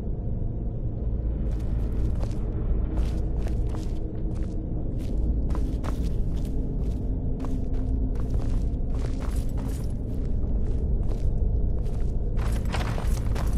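Footsteps tread across a stone floor.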